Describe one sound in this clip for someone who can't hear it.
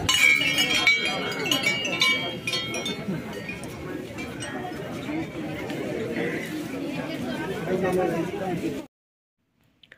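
A crowd of people chatters loudly outdoors.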